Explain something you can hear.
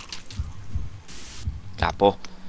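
A burst of loud static hisses briefly.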